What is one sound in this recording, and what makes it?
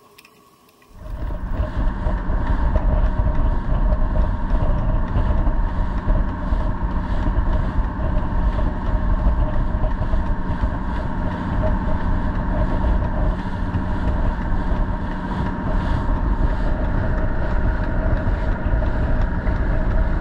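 Waves rush and splash against a fast boat's hull.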